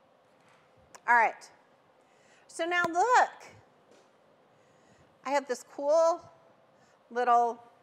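A middle-aged woman speaks calmly and clearly into a microphone, in short phrases.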